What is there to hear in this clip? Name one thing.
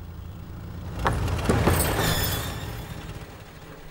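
A heavy truck tyre rolls forward and crunches over a stone on gravel.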